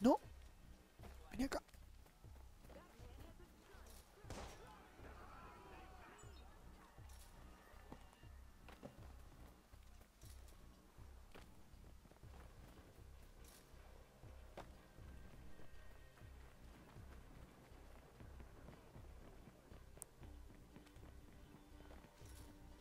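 Footsteps rustle through tall grass and over pavement.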